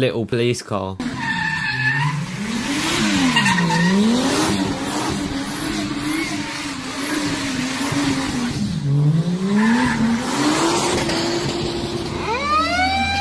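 A car engine revs hard, rising and falling, close by.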